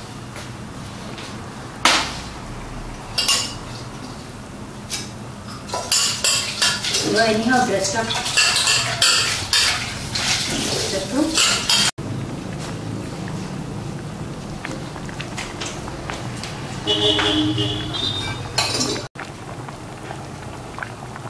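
Thick sauce bubbles and simmers gently in a pan.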